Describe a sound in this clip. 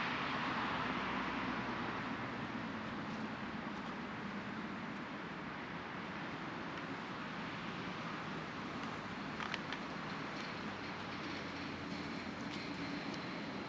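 A river flows and gurgles softly nearby.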